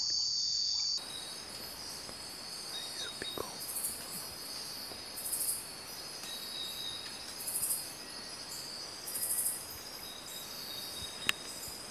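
A large animal's hooves shuffle softly over dry leaves.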